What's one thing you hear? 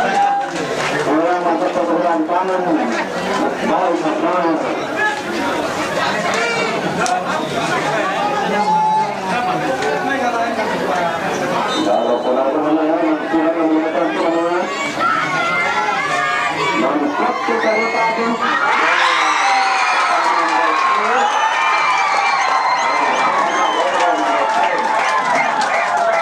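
A crowd of spectators talks and shouts outdoors.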